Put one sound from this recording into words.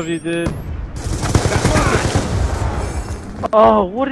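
A rifle fires rapid bursts of automatic gunfire.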